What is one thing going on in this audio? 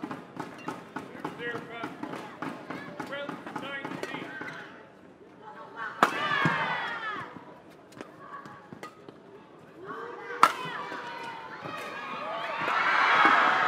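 Rackets smack a shuttlecock back and forth in a fast rally.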